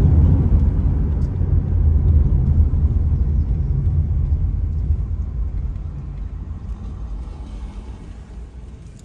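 Tyres hiss on a wet road as a car slows to a stop.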